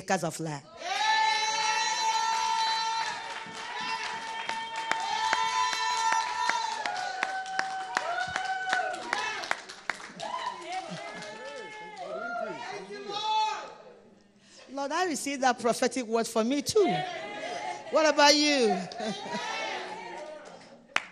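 A woman sings into a microphone, heard through loudspeakers in an echoing room.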